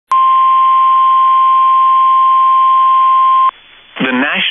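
A steady high alert tone plays over a radio stream.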